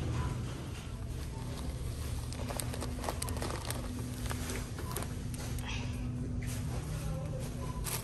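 A plastic bag of dried lentils crinkles in a hand.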